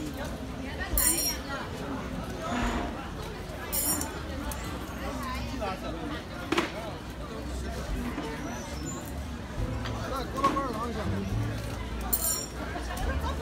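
Metal tools ring with short high chimes.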